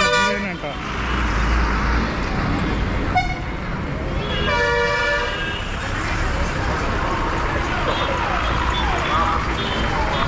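A bus engine rumbles as it passes close by.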